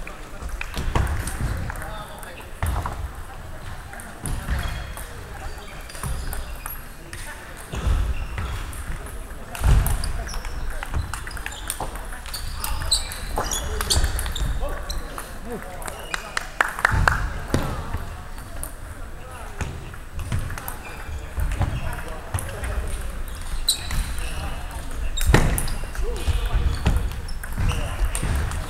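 A ping-pong ball clicks back and forth on a table and paddles.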